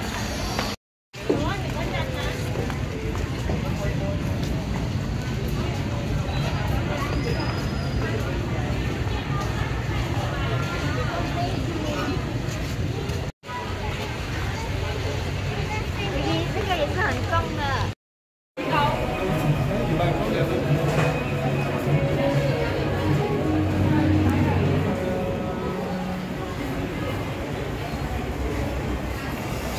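A crowd chatters all around indoors.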